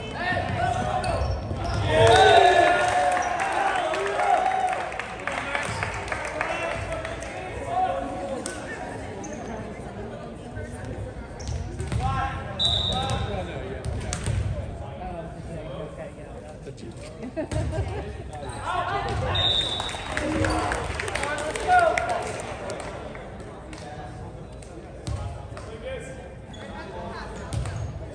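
Teenage boys shout and call to each other in an echoing gym.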